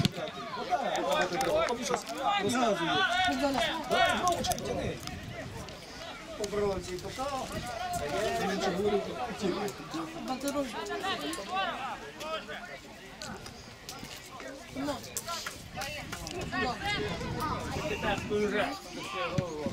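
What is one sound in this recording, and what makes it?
Men and women chat loudly close by, outdoors.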